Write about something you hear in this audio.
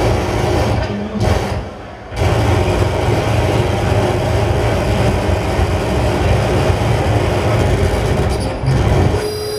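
Loud electronic music with a deep, thumping bass plays through big loudspeakers in a large echoing room.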